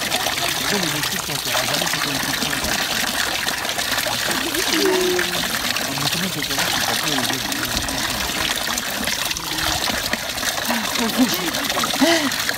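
Water trickles steadily from a spout into a basin.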